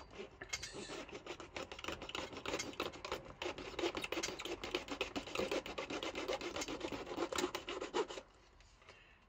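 A sanding block rasps back and forth over a plastic part.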